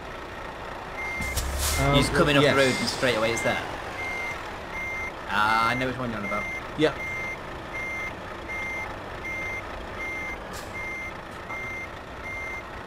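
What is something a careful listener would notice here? A truck's reversing alarm beeps steadily.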